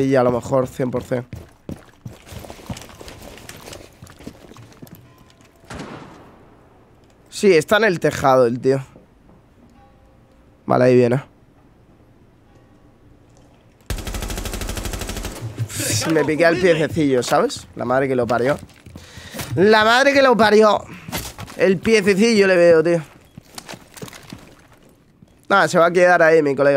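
A young man talks with animation into a microphone, close up.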